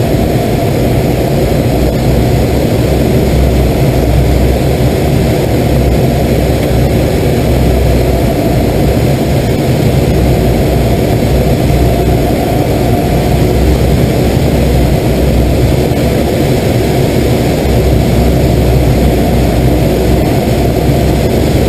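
A small plane's engine drones steadily close by.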